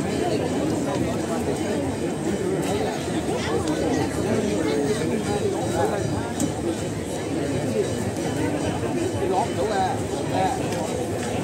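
A large crowd of men and women chatters and calls out all around, outdoors.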